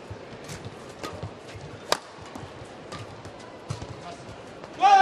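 Rackets smack a shuttlecock back and forth in a quick rally.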